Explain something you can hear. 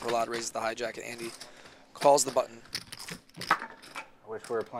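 Poker chips click and clatter together.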